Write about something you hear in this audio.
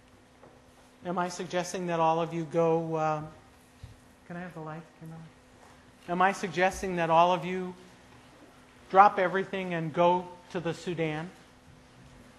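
A woman speaks calmly through a microphone, in short phrases with pauses.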